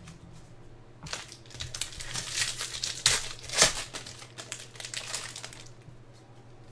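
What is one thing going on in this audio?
A plastic wrapper crinkles and tears as it is ripped open.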